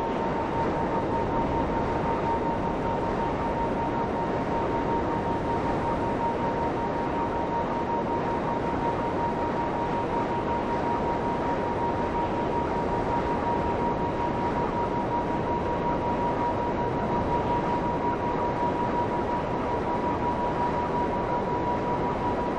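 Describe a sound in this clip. A game vehicle's engine drones.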